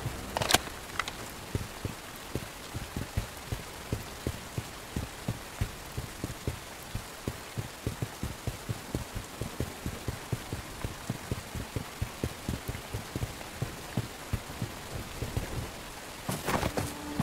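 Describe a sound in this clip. Footsteps tread steadily on grass and stone.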